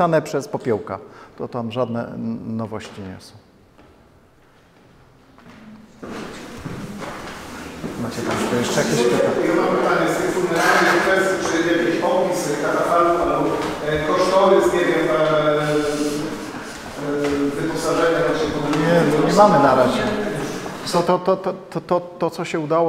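An older man speaks calmly to an audience in an echoing hall.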